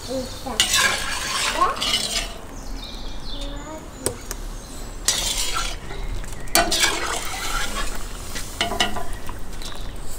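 A metal skimmer scrapes and clanks inside a cast-iron cauldron.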